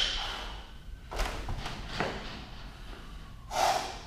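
Footsteps thud softly on a rubber floor.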